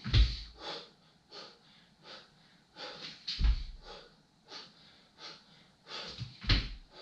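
A man breathes heavily in and out.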